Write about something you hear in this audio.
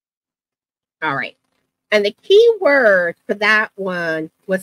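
A woman speaks with animation into a microphone, heard over an online call.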